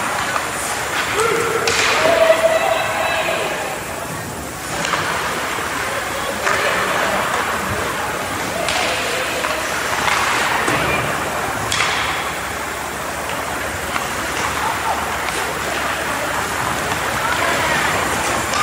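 Players shout and call out in a large echoing rink.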